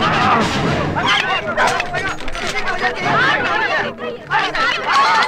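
A crowd of men shouts and yells excitedly.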